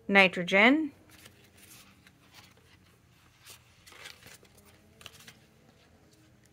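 Stiff paper cards rustle and tap softly as they are handled and laid down.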